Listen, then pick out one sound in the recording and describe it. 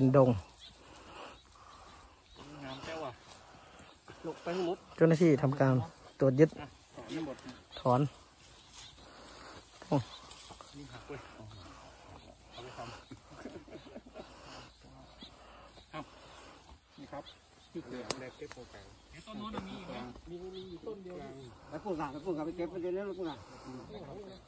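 Leafy plants rustle as they are pulled from the soil and carried.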